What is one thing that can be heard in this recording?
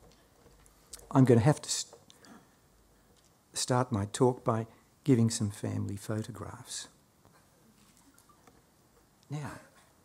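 A middle-aged man speaks calmly into a microphone in a large hall, pausing between phrases.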